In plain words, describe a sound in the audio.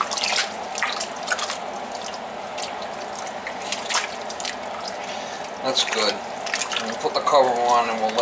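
A spoon stirs a thick stew in a metal pot.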